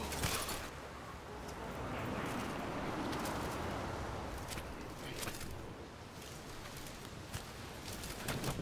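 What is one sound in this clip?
Water washes gently against a shore.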